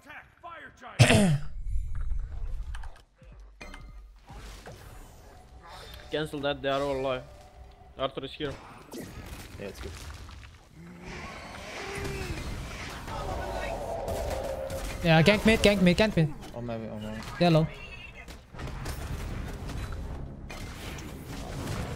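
Game spells burst and whoosh during a fight.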